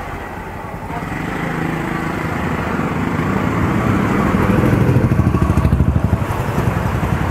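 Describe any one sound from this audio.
A vehicle engine hums steadily and grows louder.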